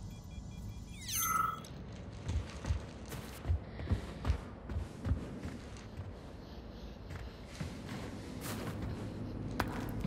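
Footsteps crunch over debris on a hard floor.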